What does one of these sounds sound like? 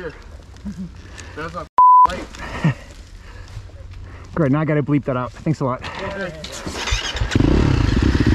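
A dirt bike engine idles and revs nearby.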